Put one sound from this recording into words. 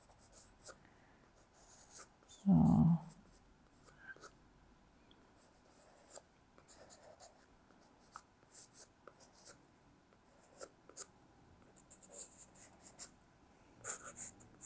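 A pencil scratches and taps softly on paper.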